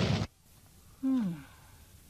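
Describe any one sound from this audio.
A woman lets out a short falling cry up close.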